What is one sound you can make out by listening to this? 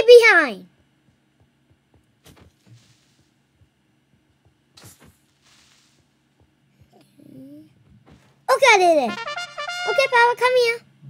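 A young boy cries out in excited, wavering shouts close to a microphone.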